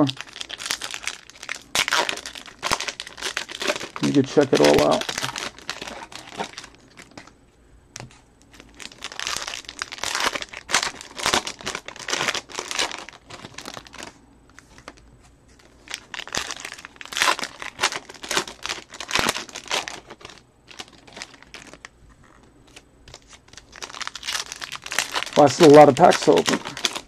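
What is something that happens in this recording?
Foil card wrappers crinkle and tear close by.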